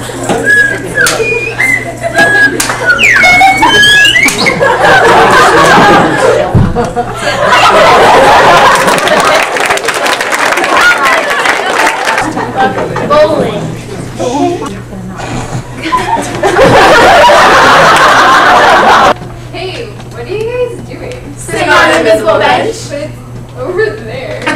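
Young women talk and laugh excitedly nearby.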